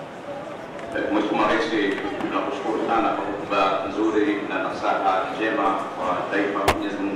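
A man speaks steadily through a microphone and loudspeakers, echoing in the hall.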